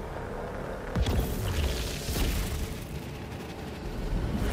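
A teleporter bursts with a loud electric whoosh.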